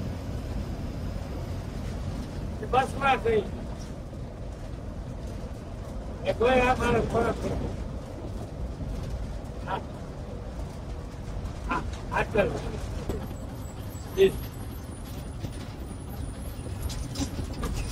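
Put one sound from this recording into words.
A bus engine hums steadily with a low rumble.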